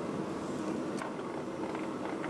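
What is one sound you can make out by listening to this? A metal bar clanks against a vise.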